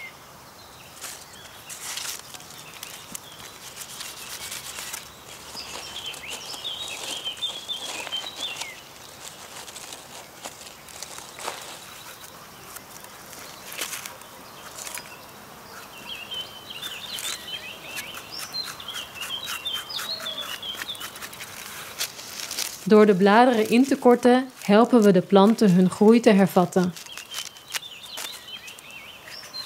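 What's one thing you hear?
Leek leaves rustle and crackle close by.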